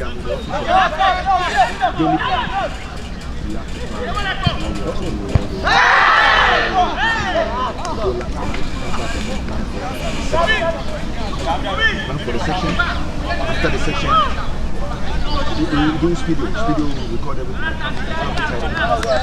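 A crowd of young men and women shout and cheer from a distance across an open field.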